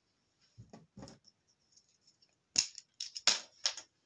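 A pen is picked up from a wooden table with a light knock.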